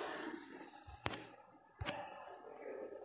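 A button clicks twice.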